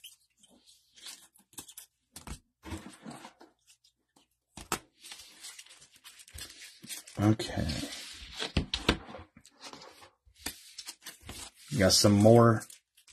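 Plastic card cases clack and rattle against each other.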